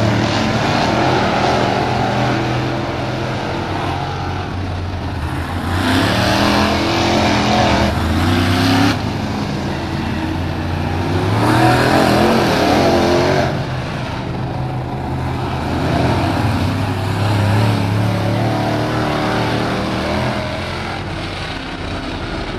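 Race car engines roar loudly as they speed past outdoors.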